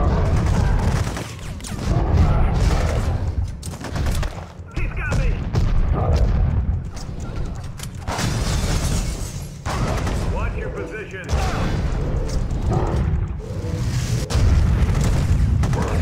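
Heavy punches and crashes thud from a video game.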